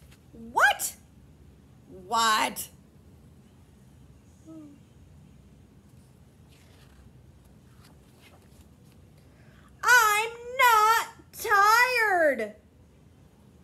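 A young woman reads aloud expressively in voices, close by.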